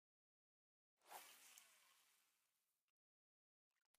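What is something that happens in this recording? A fishing line whizzes out.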